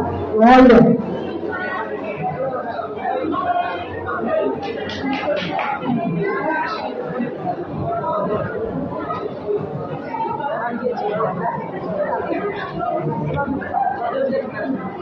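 A woman sings into a microphone in a large echoing hall.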